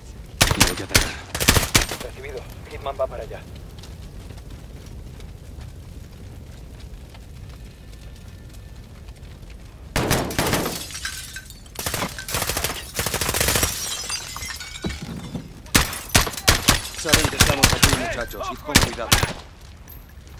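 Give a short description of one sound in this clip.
Rifle shots crack out in sharp bursts.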